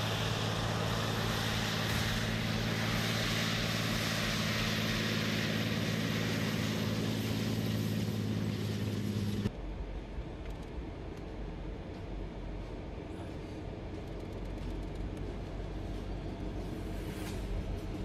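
Tank tracks clank and rumble over dirt.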